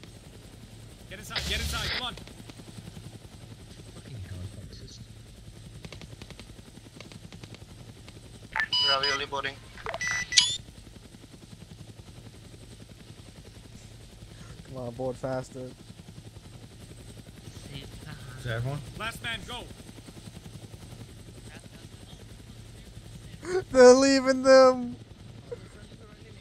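A helicopter's rotor thumps.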